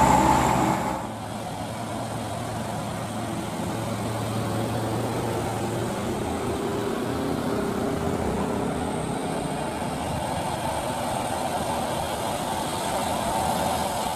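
Truck engines drone steadily as they climb a road toward the listener.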